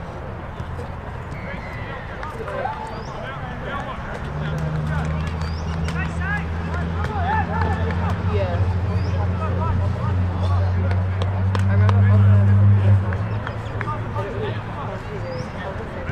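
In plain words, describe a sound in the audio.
Players shout to each other across an open field, far off.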